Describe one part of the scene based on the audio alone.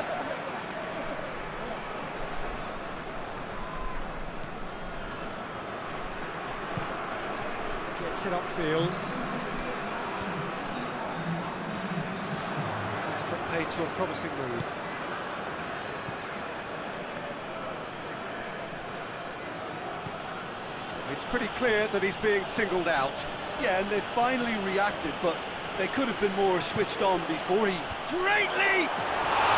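A crowd murmurs and cheers steadily in a large stadium.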